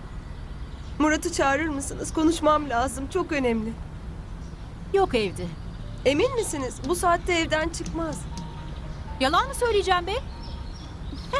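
A woman speaks calmly and seriously.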